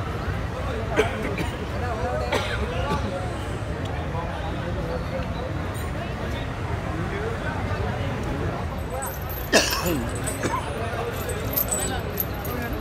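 Men and women in the crowd call out and shout now and then.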